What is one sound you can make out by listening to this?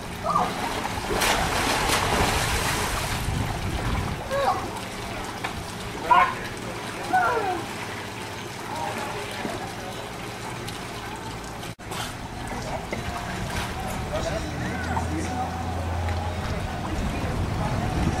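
Water splashes as a small child paddles in a pool.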